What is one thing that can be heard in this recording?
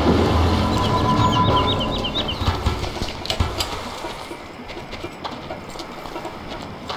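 Footsteps tread through grass and leaves.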